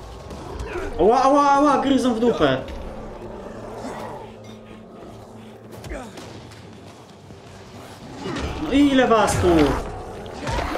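A zombie-like creature snarls and growls loudly.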